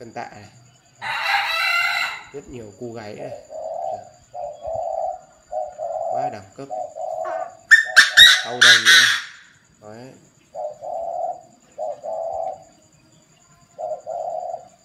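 A caged bird calls in short, repeated bursts.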